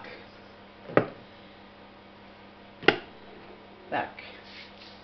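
Metal cans clink as they are set down on a stack.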